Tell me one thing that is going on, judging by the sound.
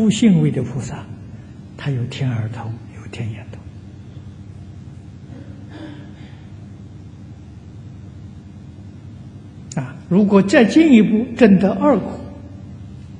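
An elderly man speaks calmly into a microphone, pausing between phrases.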